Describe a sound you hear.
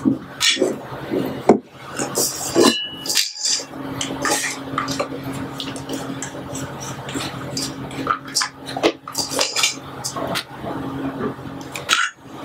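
A spatula scrapes against a metal bowl.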